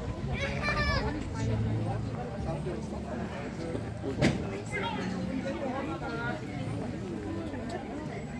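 People chatter in the distance outdoors.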